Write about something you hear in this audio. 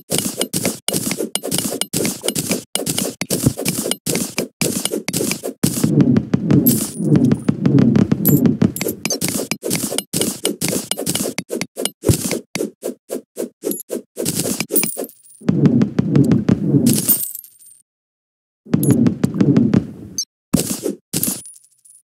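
A pickaxe chips rapidly at stone and dirt, with quick repeated knocks.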